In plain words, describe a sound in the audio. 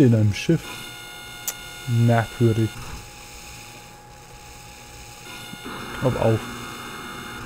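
Weapon blasts go off in short, pulsing bursts.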